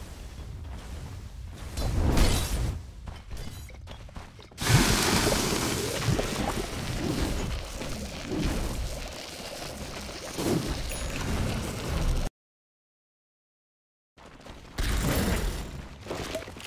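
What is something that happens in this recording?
Spell blasts and clashing weapons sound in a fantasy video game battle.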